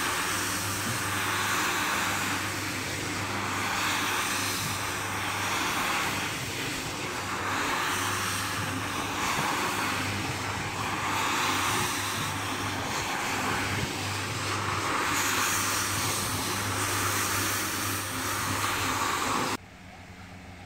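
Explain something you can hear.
A floor scrubbing machine hums steadily and swishes through wet foam on a rug.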